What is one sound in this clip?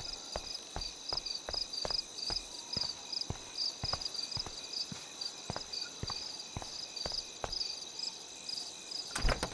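Footsteps walk steadily along a hard path.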